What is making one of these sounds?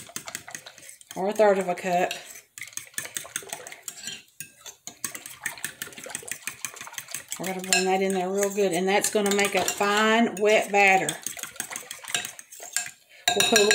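A whisk scrapes and taps against a glass bowl.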